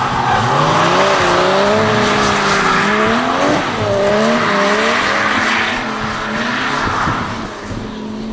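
Tyres screech as cars slide around a bend.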